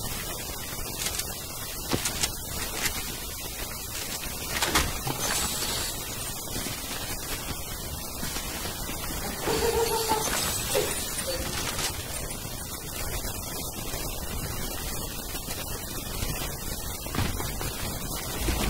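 Footsteps patter quickly on grass and dirt.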